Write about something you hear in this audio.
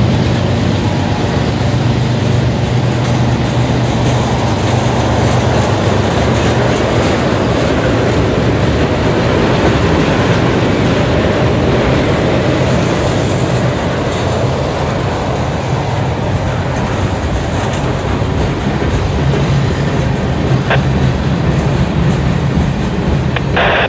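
A freight train rolls by close up, its steel wheels rumbling on the rails.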